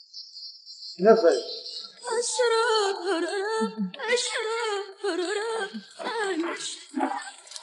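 A young man speaks.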